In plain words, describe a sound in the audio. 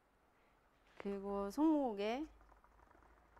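A young woman speaks brightly close by.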